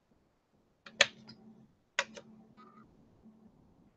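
A metal ruler clacks down on a hard table.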